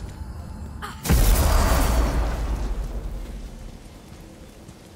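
A loud whoosh bursts and slowly fades.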